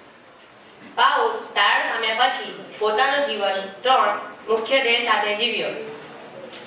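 A boy speaks loudly into a microphone, heard through a loudspeaker.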